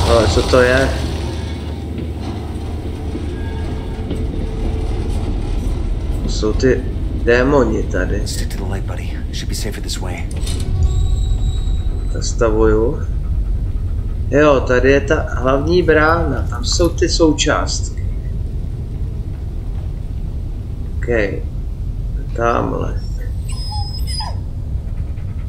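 A small vehicle's motor rumbles steadily as it rolls along.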